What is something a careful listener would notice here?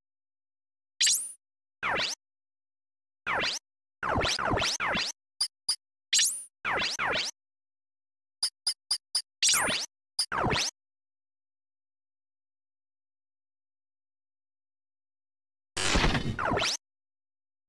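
Electronic menu sounds chirp and swoosh in short bursts.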